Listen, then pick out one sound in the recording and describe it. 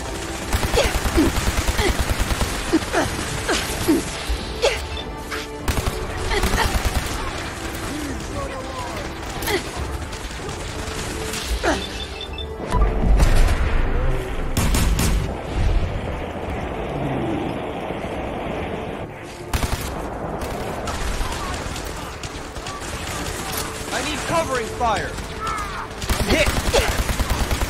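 Laser rifles fire in rapid bursts of zapping shots.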